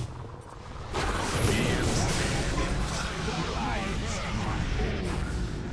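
Magic spells crackle and burst in a loud fantasy battle.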